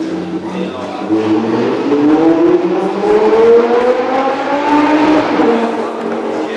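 A V12 sports car engine revs up.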